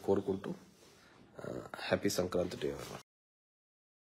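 A man speaks calmly, close up.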